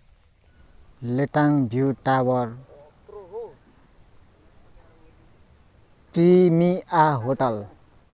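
A young man speaks up close.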